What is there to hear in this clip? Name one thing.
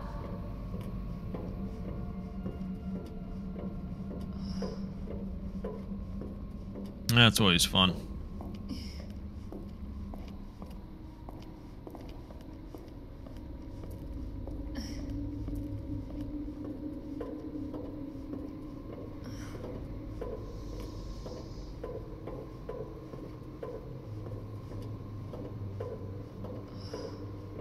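Machinery hums low and steady.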